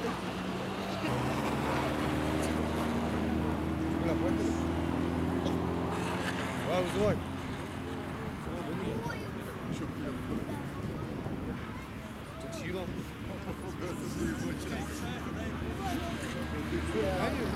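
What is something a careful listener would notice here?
Car engines roar and rev as the cars race on an icy track.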